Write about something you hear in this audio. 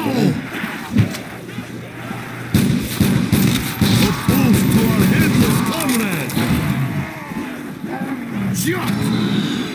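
Loud gunshots ring out.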